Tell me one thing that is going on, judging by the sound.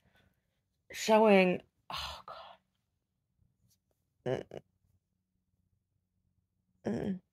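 A woman sobs and whimpers close by.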